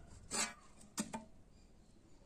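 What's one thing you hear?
A block of wood knocks against wood.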